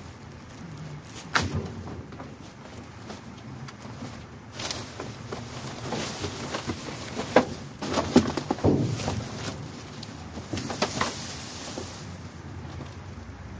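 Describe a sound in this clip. Cardboard boxes scrape and thump as they are moved.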